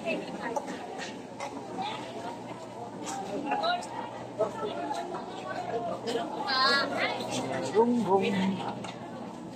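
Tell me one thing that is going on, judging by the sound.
A crowd of shoppers and vendors chatters all around in a busy indoor market.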